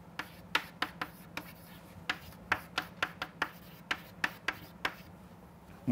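Chalk taps and scratches sharply on a blackboard.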